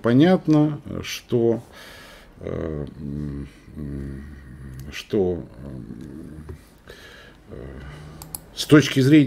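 An elderly man talks calmly over an online call.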